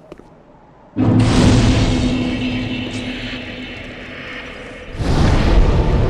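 A fire bursts alight with a loud whoosh and then crackles.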